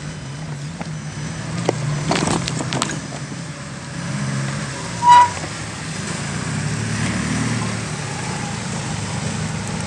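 An engine hums steadily nearby.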